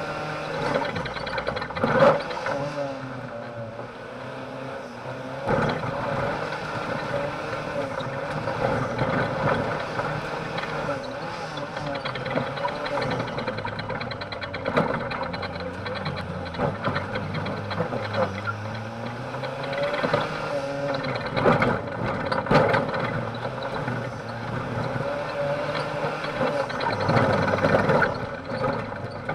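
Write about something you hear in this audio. Gravel and dirt crunch under the tyres.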